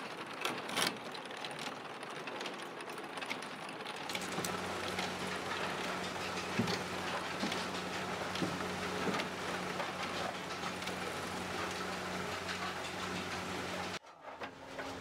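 A kiln fire roars steadily.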